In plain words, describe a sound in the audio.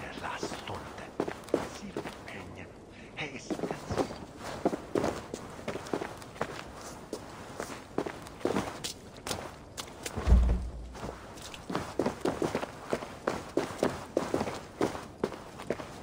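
Slow footsteps creak and thud on a wooden floor.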